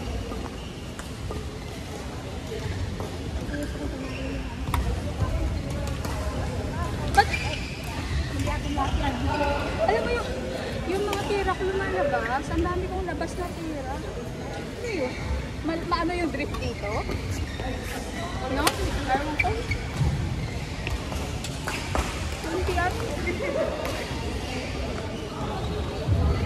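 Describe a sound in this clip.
Young women call out and chatter in a large echoing hall.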